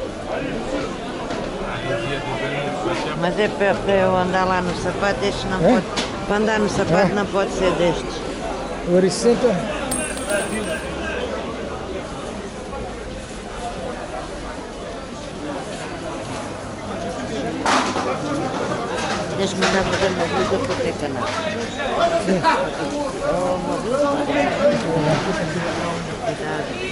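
A crowd of people chatters in a busy outdoor market.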